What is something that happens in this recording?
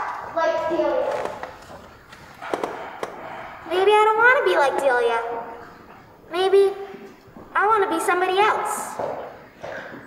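A young girl speaks with strong feeling, her voice wavering and rising, close by.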